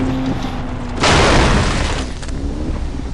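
A truck crashes through bushes.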